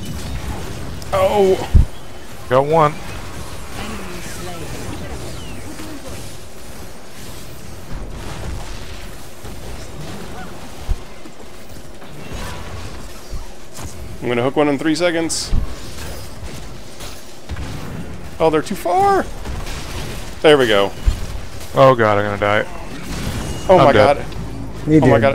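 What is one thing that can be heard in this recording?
Magic blasts and weapon clashes sound in a fantasy battle.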